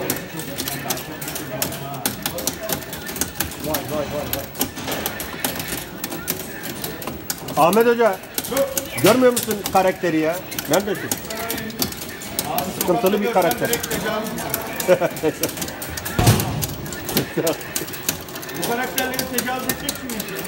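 Punches and kicks from a fighting game smack and thud through an arcade cabinet's loudspeaker.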